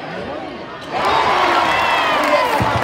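A basketball crowd cheers and shouts loudly in an echoing gym.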